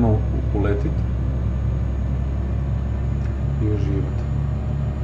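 A young man speaks briefly and calmly, close to a microphone.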